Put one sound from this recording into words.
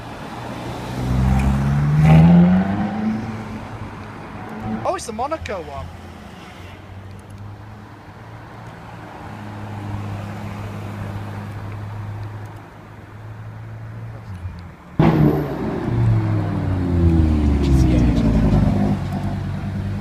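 A sports car engine roars loudly and revs up as it accelerates past.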